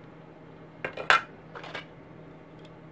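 Plastic model parts click and clatter as they are picked up.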